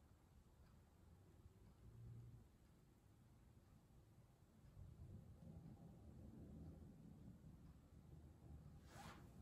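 Melted wax pours into a glass jar.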